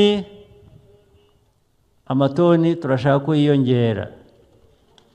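A man speaks forcefully through a microphone and loudspeakers outdoors.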